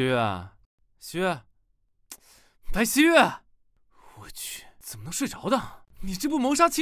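A young woman speaks softly and sleepily.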